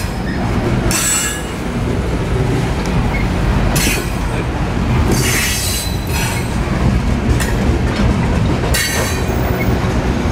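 Train wheels squeal in short high bursts against the rails.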